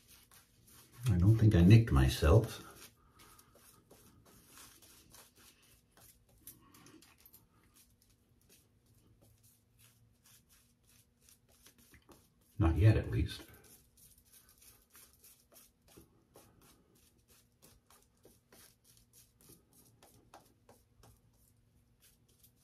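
A shaving brush swishes and scrubs lather against stubble.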